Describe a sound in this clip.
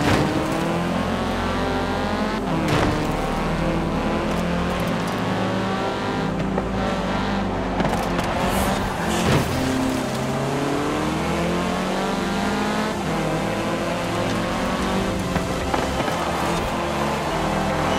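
A car engine revs high and shifts gears as it races.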